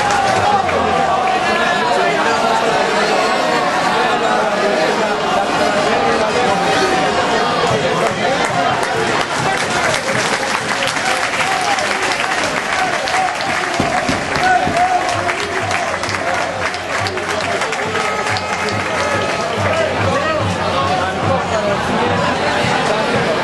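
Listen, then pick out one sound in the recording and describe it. A crowd of fans cheers and chants loudly in a stadium.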